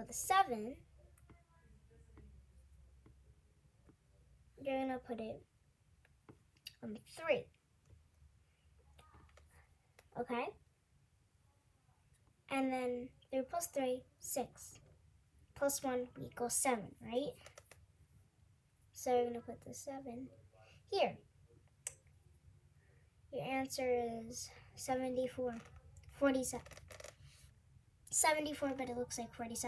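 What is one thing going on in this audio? A young girl speaks close by, explaining calmly in short bursts.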